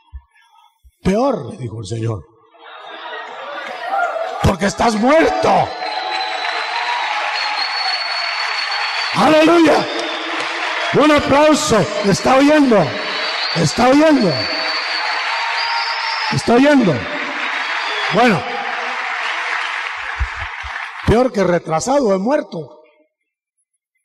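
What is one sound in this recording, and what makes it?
A man preaches loudly and with animation through a microphone.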